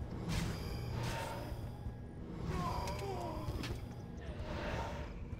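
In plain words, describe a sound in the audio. Magic spells whoosh and chime amid clashing combat.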